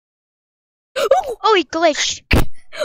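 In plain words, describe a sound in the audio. A second boy talks and exclaims loudly into a microphone.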